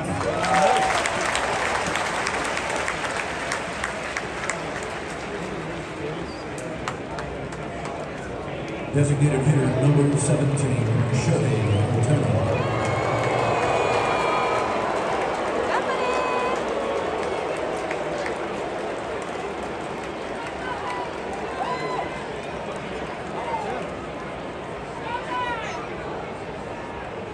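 A large stadium crowd murmurs and cheers all around, with a wide open echo.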